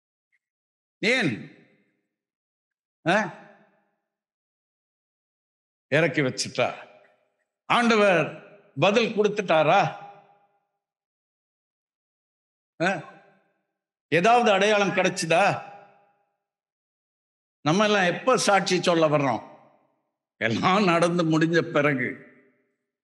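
An elderly man speaks slowly and earnestly into a close microphone, with pauses.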